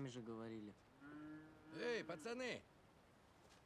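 A boy answers in a young voice.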